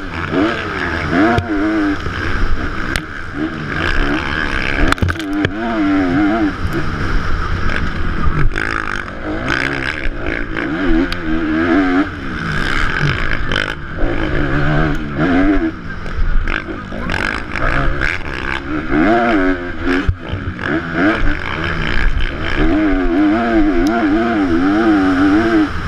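A motocross bike engine revs hard up and down, loud and close.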